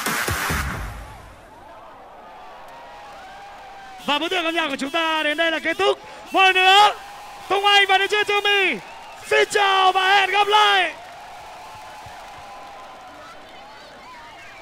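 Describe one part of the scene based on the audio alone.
A large crowd cheers outdoors.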